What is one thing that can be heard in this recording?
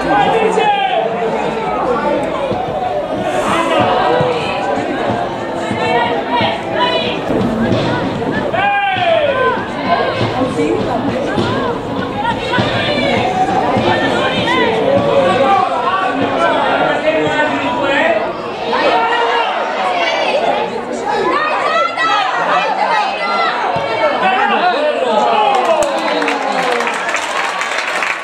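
Players shout to each other across an open pitch.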